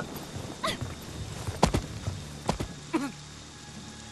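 A window frame knocks and scrapes as someone climbs through it.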